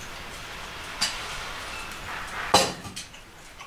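Metal cookware clanks as it is handled.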